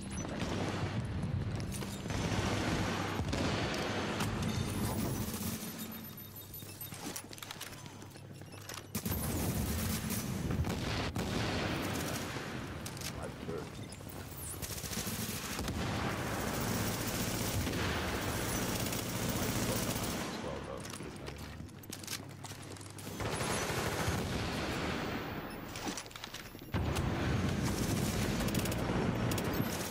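Automatic gunfire rattles and echoes in a tunnel.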